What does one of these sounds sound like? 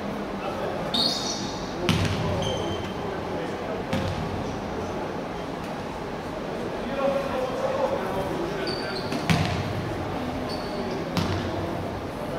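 Basketball shoes squeak sharply on a wooden court.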